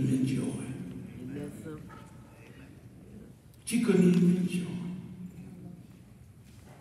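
An elderly man preaches with feeling through a microphone in a large echoing hall.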